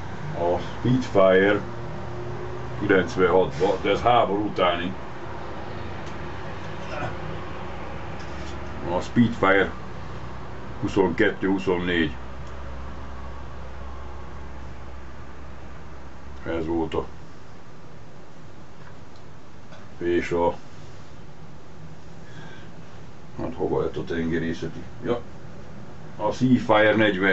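An elderly man speaks calmly close by, in short bursts with pauses.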